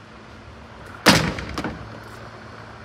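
A metal cab door clunks open with a loud bang.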